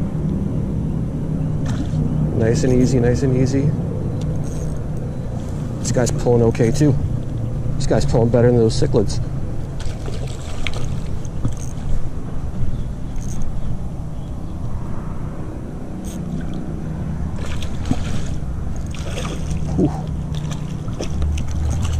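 A fishing reel clicks and whirs as its handle is cranked close by.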